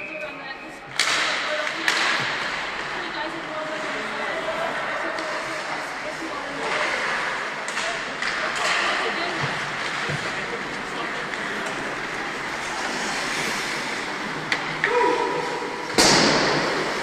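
Hockey sticks slap a puck with sharp cracks.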